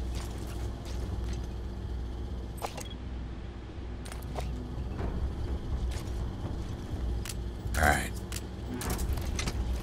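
Footsteps crunch on gravel at a slow pace.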